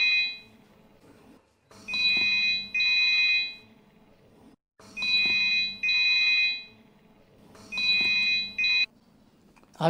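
A mobile phone rings in short repeated bursts.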